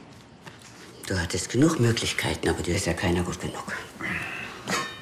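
An older woman speaks calmly close by.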